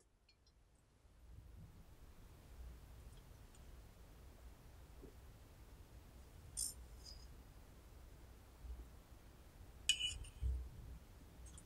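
Chopsticks tap and scrape against a metal scoop.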